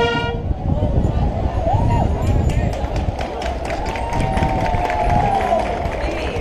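Drums tap and clatter in a marching band.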